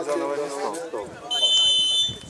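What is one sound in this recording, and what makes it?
Spectators chatter and call out nearby, outdoors.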